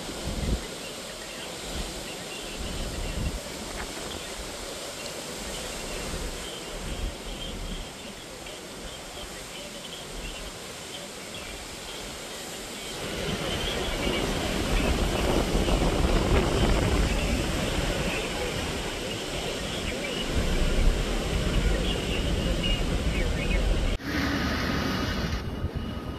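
Strong wind gusts and roars outdoors.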